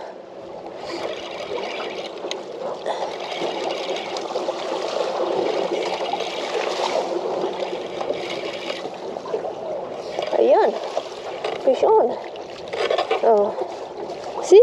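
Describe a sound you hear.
Water laps and splashes against a boat.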